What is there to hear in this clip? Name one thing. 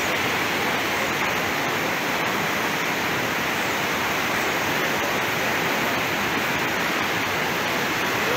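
A muddy river rushes loudly over rocks.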